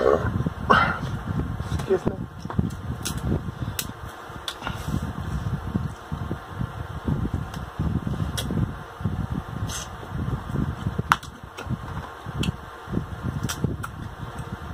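A woman chews and smacks her lips wetly close to the microphone.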